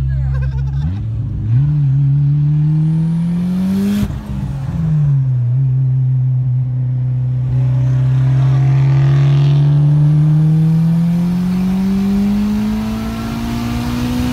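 A car engine revs loudly and speeds up.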